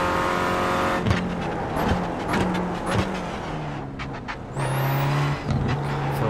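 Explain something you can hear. A racing car engine blips sharply through downshifts as the car slows.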